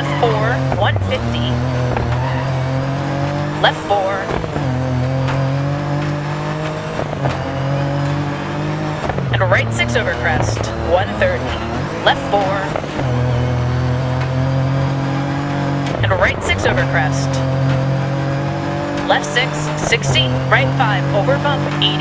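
A rally car engine roars and revs up and down through the gears.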